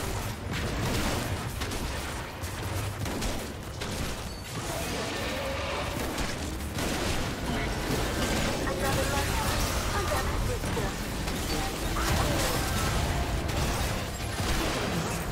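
Magic spells blast and clash in a fast video game battle.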